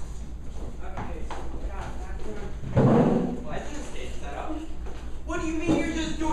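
A man speaks loudly on a stage.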